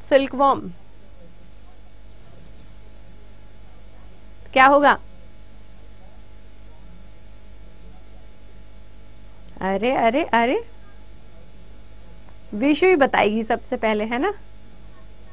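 A young woman speaks into a microphone in short bursts.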